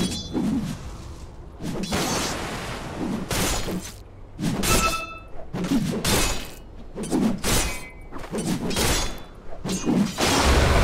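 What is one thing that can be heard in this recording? Magic spells whoosh and crackle in bursts during a fantasy battle.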